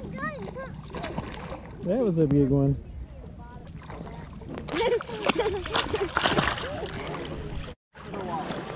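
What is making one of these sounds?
Water splashes as a small child paddles close by.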